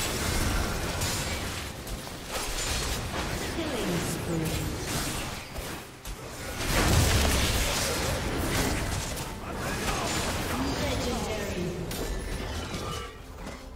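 Video game combat effects whoosh, zap and crackle.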